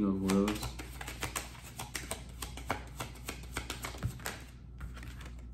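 A small object crinkles and taps in a man's hands.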